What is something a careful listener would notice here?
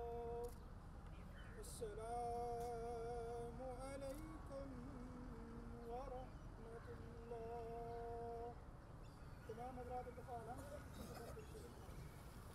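A man chants a prayer in a long, drawn-out voice.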